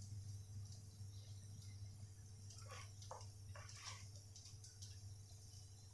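A metal spatula scrapes against a pan.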